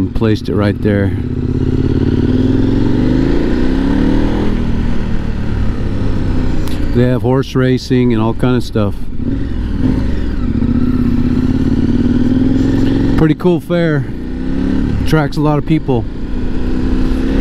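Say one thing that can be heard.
A motorcycle engine hums and revs up and down close by.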